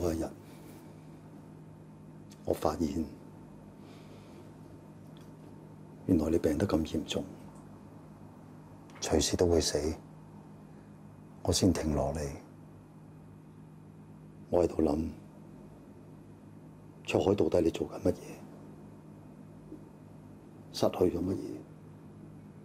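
A man speaks quietly and slowly, close by, with long pauses.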